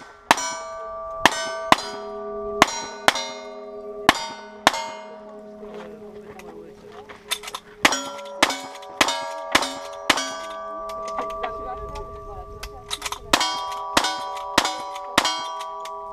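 Gunshots crack outdoors, one after another at an uneven pace.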